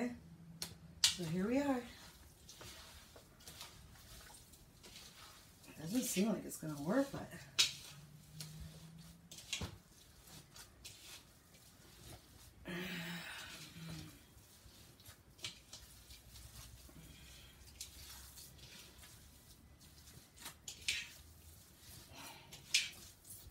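Hands squish and knead a soft mixture in a bowl.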